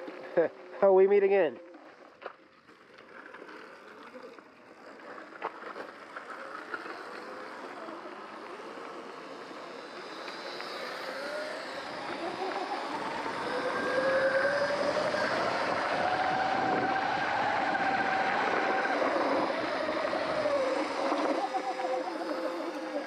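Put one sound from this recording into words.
Tyres crunch and rumble over a gravel track.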